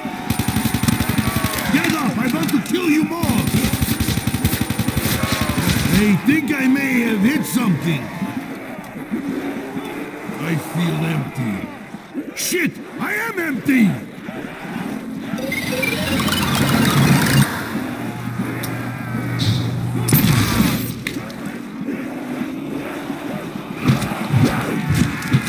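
Zombies growl and moan nearby.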